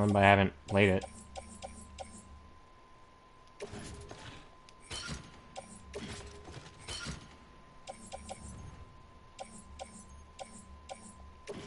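Soft electronic menu beeps and clicks come in quick succession.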